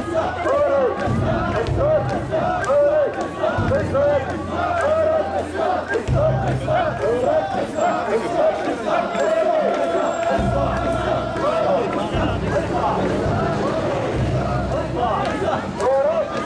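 A large crowd of men chants loudly in rhythm outdoors.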